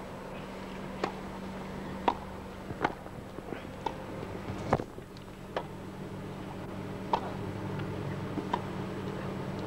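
Tennis balls are struck back and forth with sharp pops.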